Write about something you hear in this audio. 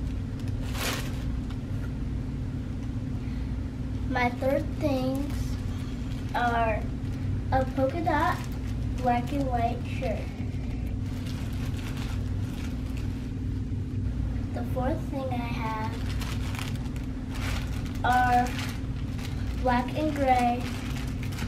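Paper and plastic wrapping rustle as a girl unpacks a box.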